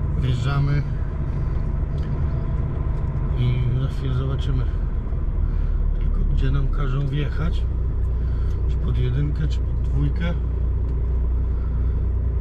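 A vehicle rolls slowly over pavement with a low, steady rumble.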